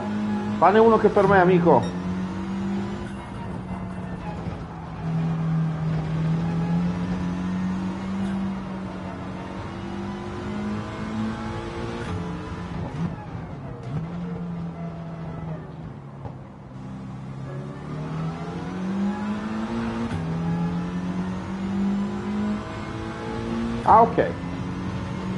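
A racing car engine roars steadily, rising and falling in pitch as it revs through the gears.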